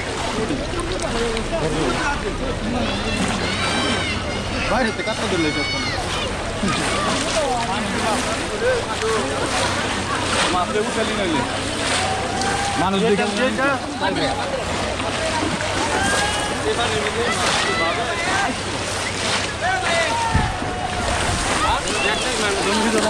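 Water splashes as people wade.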